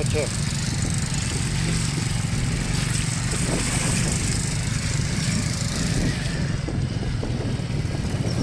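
A motorcycle engine rumbles steadily as it rides slowly along.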